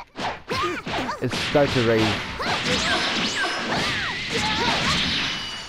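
Punches and kicks land with rapid thuds.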